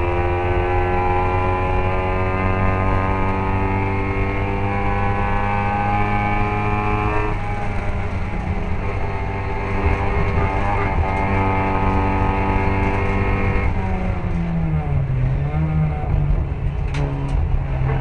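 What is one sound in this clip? Another racing car engine drones close by.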